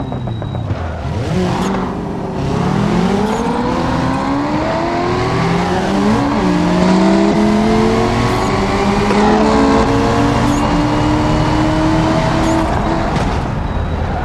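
A car engine revs hard, rising in pitch again and again as it shifts up through the gears.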